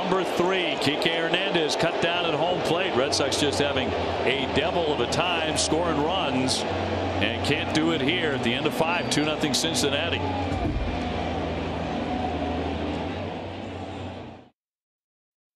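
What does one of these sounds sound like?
A large crowd murmurs and cheers in a stadium.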